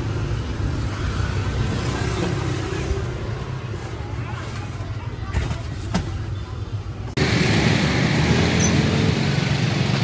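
Cardboard boxes scrape and thump as they are stacked.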